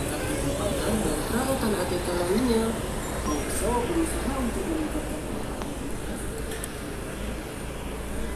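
Motorcycles ride by on a busy street.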